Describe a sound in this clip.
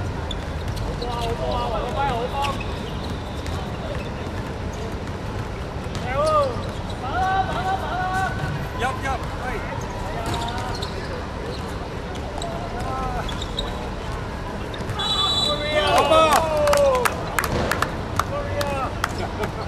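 Young men shout to each other during a basketball game.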